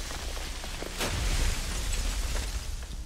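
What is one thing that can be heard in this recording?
Glass shatters loudly, with shards scattering.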